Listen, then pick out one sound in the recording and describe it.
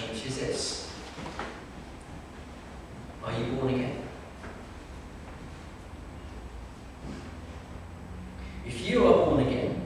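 A middle-aged man speaks slowly and calmly into a microphone in an echoing hall.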